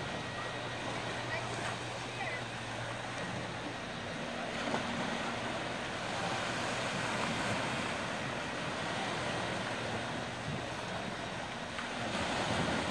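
Small waves wash steadily onto a sandy shore outdoors.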